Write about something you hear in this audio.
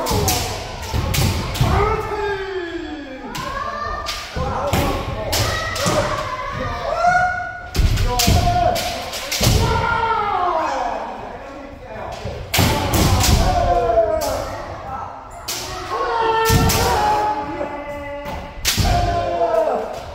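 Bamboo swords clack and strike in quick bursts.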